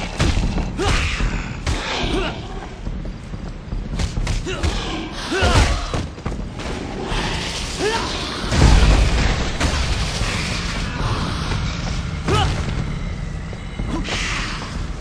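Men grunt and cry out as they are hit.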